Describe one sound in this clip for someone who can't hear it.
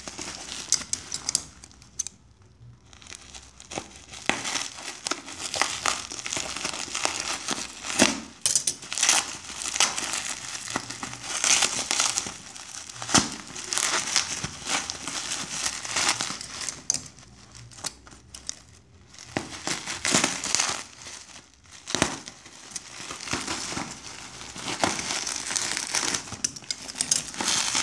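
Bubble wrap bubbles pop with sharp snaps.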